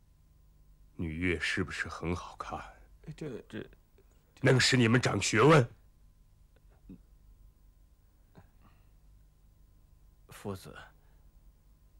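A man speaks calmly and firmly nearby, in short bursts.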